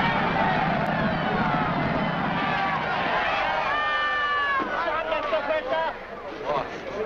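A large crowd cheers and shouts excitedly.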